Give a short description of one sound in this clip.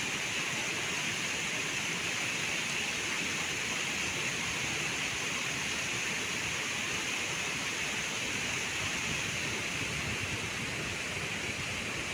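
A river flows and rushes steadily outdoors.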